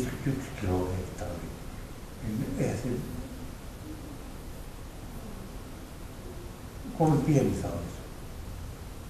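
A man speaks calmly through a microphone in an echoing hall, with pauses.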